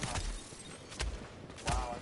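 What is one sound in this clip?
Gunfire rattles in a game.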